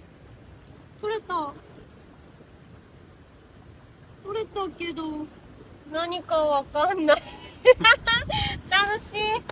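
A young woman speaks brightly and laughs close by.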